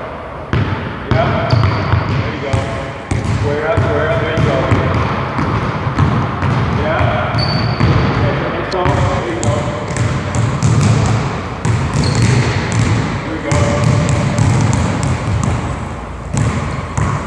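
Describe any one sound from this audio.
A basketball bounces rapidly on a wooden floor in an echoing gym.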